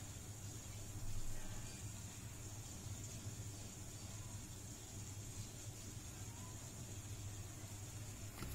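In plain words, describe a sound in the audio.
Paper rustles as it is folded.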